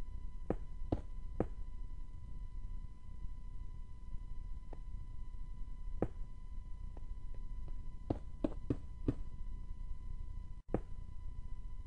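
Stone blocks are set down with short, dull knocks.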